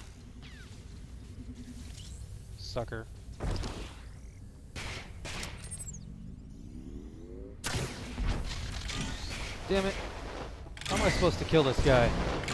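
Sci-fi blaster shots zap.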